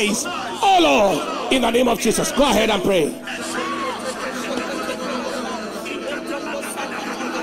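A large crowd of men and women pray aloud together in a big echoing hall.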